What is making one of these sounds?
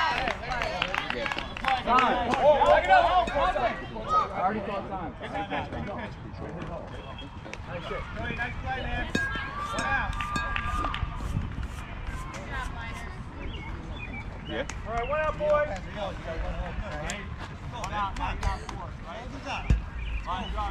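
Children and adults shout and cheer outdoors.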